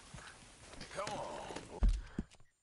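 A horse whinnies briefly.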